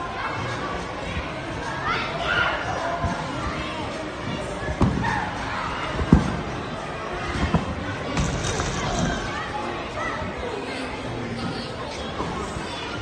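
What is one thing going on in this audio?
Children and adults chatter and shout in a large echoing hall.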